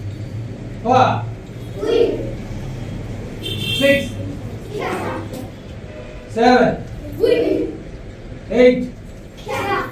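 A group of young children shout out together in short, loud bursts, roughly every second.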